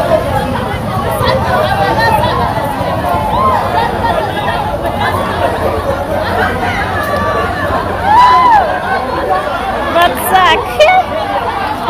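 A crowd of men and women shouts and chatters excitedly outdoors.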